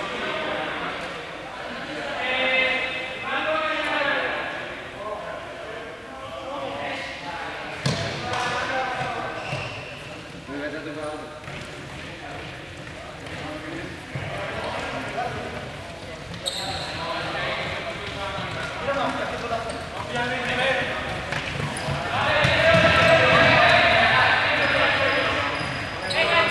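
Young men call out and shout to one another in a large echoing hall.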